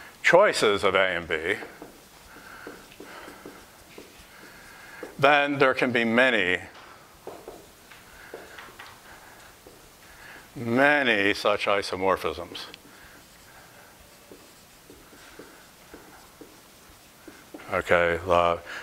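A man speaks calmly in short bursts.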